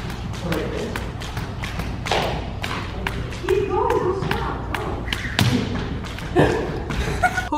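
A jump rope slaps a wooden floor in a quick, steady rhythm.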